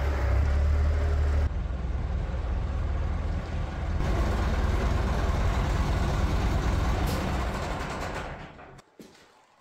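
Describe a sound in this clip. A tractor engine rumbles and idles loudly.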